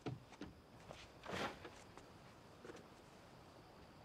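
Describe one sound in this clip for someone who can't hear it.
A folding chair creaks as a man sits down.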